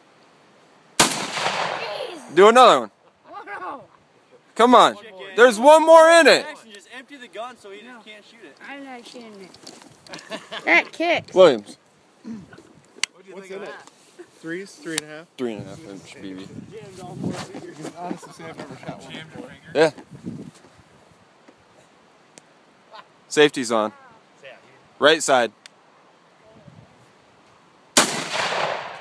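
A shotgun fires a loud blast outdoors.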